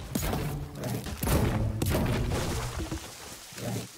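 A pickaxe chops into a tree trunk with sharp knocks.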